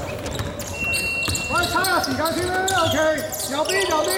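A basketball bounces on a wooden floor as a player dribbles.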